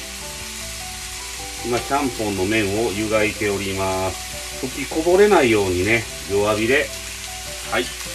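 Chopsticks stir noodles in a pot of boiling water.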